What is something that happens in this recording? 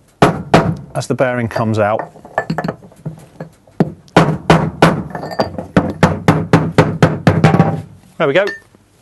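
A hammer strikes a metal punch with sharp, ringing blows.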